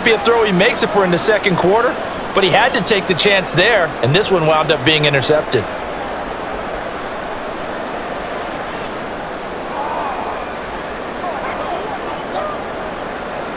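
A large crowd murmurs and cheers steadily in a big open stadium.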